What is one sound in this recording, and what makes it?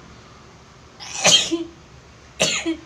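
A young woman makes short, sharp breathy sounds close by.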